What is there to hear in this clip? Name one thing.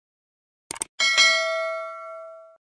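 A small bell chimes and rings out slowly.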